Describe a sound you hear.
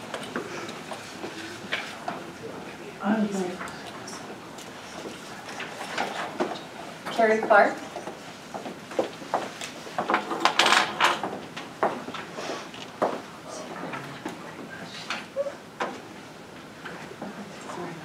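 A woman speaks to a room, with a slight echo.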